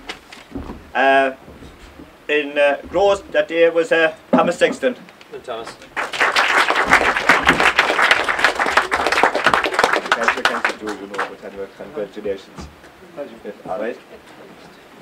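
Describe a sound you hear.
An elderly man speaks out loud to an audience.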